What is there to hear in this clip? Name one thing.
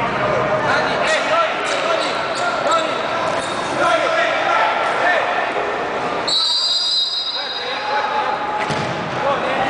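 Young men shout to each other in a large echoing space.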